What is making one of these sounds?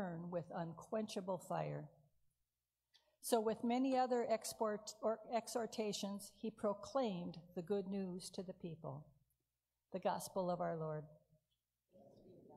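A woman reads aloud calmly into a microphone in an echoing room.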